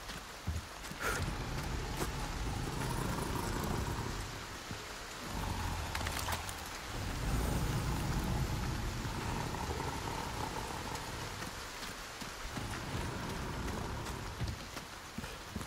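Fires crackle and roar nearby.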